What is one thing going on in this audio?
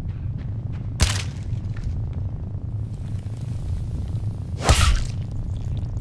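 A giant spider's leg stabs sharply into the ground.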